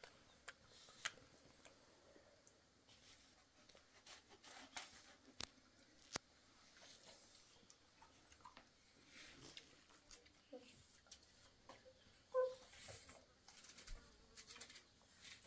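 Children munch and slurp on melon slices close by.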